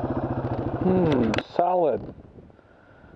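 A motorcycle engine revs briefly and then cuts off.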